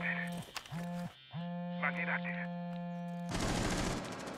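An electronic device gives off a series of short steady beeps.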